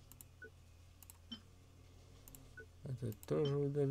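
Soft game menu clicks and chimes sound.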